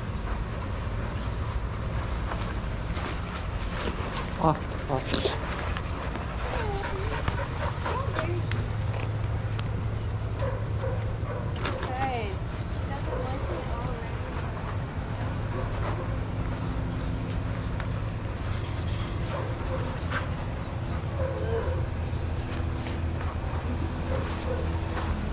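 Several dogs pant heavily close by.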